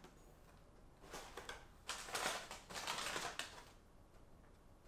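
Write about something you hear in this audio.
Paper crinkles as a sheet is unfolded.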